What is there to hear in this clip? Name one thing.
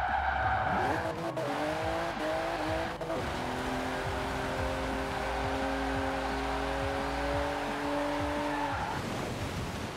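Tyres skid and hiss on a slippery road.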